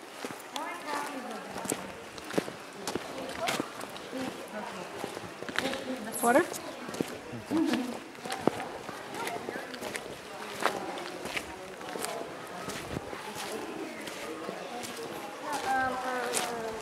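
Footsteps crunch on dry dirt and leaves.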